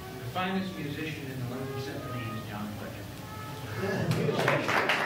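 A tuba plays a series of low notes.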